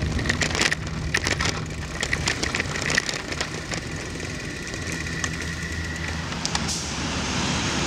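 Bicycle tyres roll steadily over pavement.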